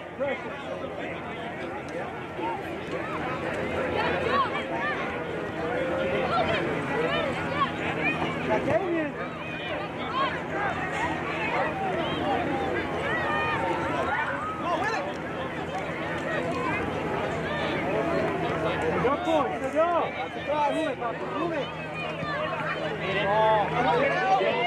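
Adult spectators chatter and call out from the sidelines.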